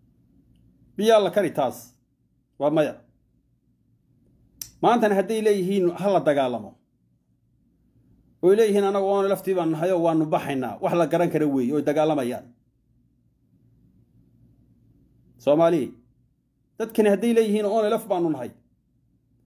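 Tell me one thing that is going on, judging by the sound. A man speaks calmly and slowly, close to a microphone, with long pauses.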